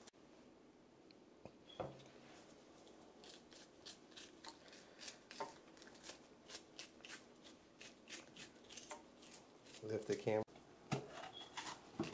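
Hands tear a crisp bell pepper apart.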